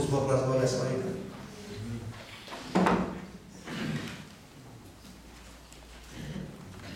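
A man speaks into a microphone in a room with some echo.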